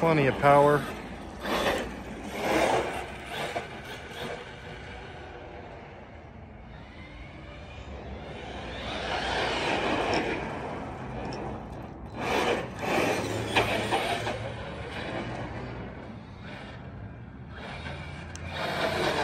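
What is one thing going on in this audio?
A small electric motor whines as a remote-control car speeds across pavement outdoors.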